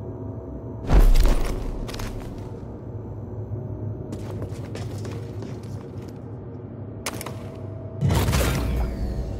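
A heavy thud sounds as someone lands hard.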